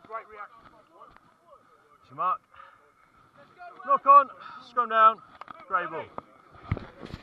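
Men shout loudly close by, outdoors.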